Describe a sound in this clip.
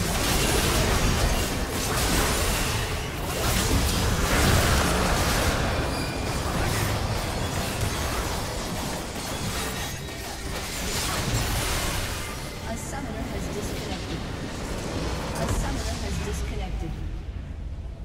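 Spell blasts, hits and explosions crash loudly in a game battle.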